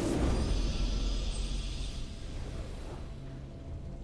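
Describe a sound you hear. A bright victory fanfare rings out and fades away.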